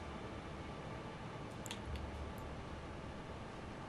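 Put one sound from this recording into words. A soft menu click sounds as a selection changes.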